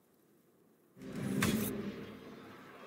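Game battle sounds swell with a sudden metallic clash of swords.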